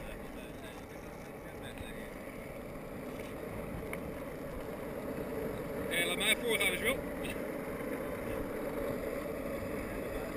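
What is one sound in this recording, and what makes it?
Skateboard wheels roll steadily over rough asphalt.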